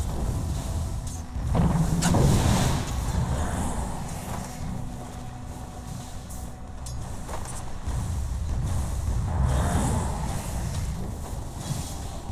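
Spell effects and weapon hits clash and whoosh in a fantasy battle.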